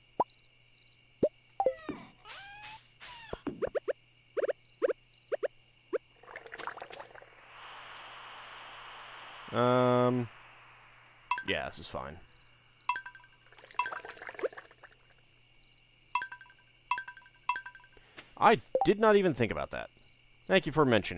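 Short soft clicks and pops sound.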